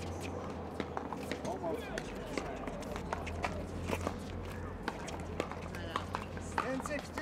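Paddles pop sharply against a plastic ball, again and again, from several courts.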